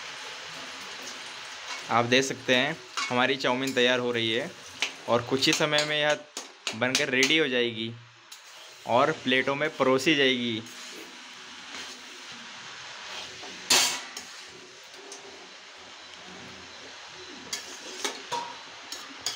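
Hands toss and mix cooked noodles in a metal wok.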